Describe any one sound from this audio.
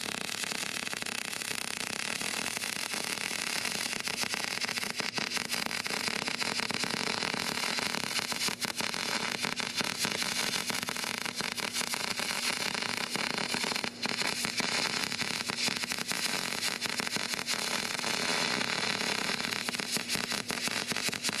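A welding arc crackles and sizzles steadily up close.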